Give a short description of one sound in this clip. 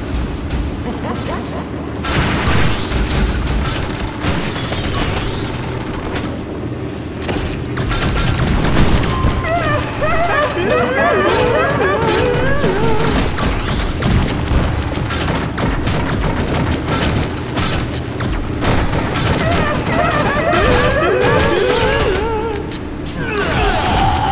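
Cartoonish game weapons fire in rapid bursts.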